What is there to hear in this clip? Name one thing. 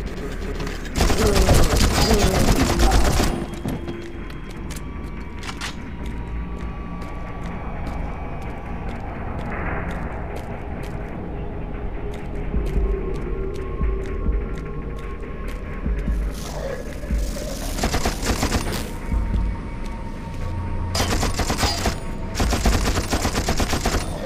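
A submachine gun fires loud rapid bursts.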